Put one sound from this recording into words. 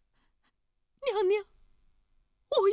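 A young woman calls out in a pleading, crying voice.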